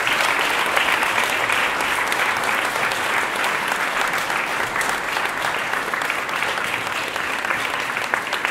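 An audience applauds steadily in a room that echoes.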